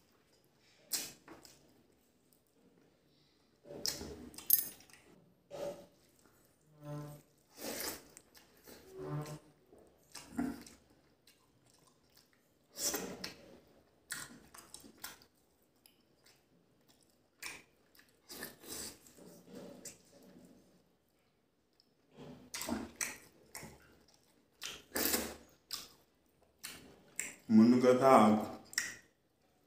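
A man chews food noisily close to a microphone.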